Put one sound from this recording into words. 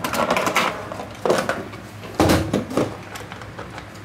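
Metal case latches click and clack.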